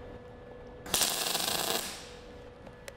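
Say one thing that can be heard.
A spot welder crackles and hisses in a short burst.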